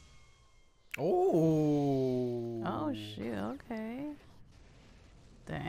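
A young man and a young woman laugh together close to microphones.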